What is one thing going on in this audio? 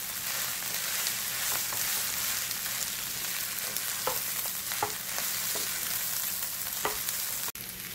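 A wooden spatula scrapes and taps against a frying pan.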